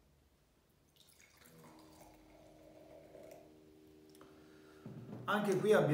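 Wine pours and fizzes into a glass.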